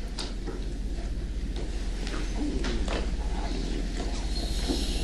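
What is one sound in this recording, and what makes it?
An adult man speaks.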